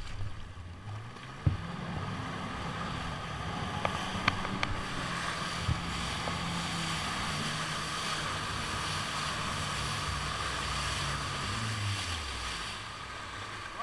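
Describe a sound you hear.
A jet ski engine revs up and roars across the water, then slows.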